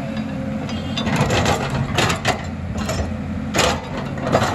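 An excavator bucket scrapes and digs into rocky soil.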